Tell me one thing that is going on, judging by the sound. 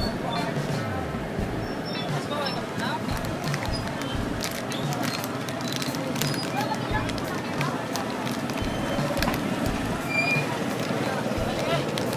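A plastic bag crinkles close by as it is handled.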